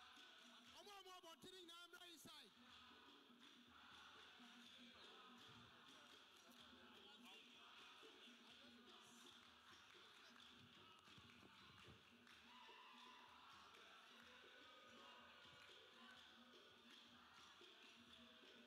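A large crowd of young men and women sings and chants loudly in an echoing hall.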